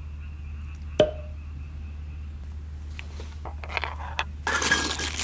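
Metal cups and utensils clink together.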